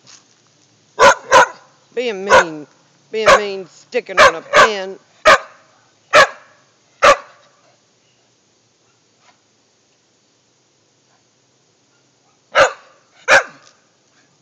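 A dog barks sharply and loudly close by.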